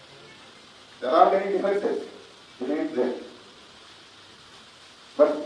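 A middle-aged man speaks firmly into a microphone, in short bursts with pauses.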